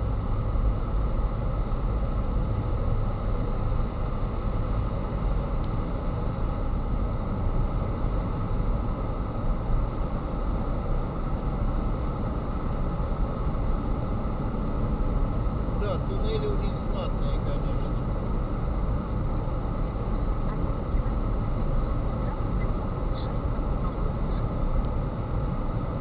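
A car engine hums steadily with a low rumble of tyres on the road, echoing inside a tunnel.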